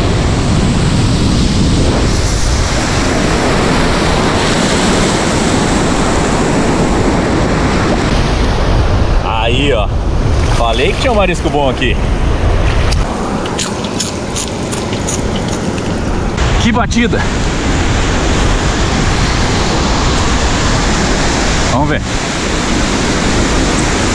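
Surf breaks and washes up a beach.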